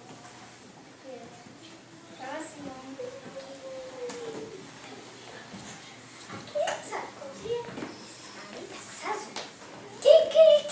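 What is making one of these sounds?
Young children talk and laugh nearby.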